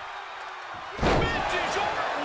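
A body slams hard onto a wrestling mat with a thud.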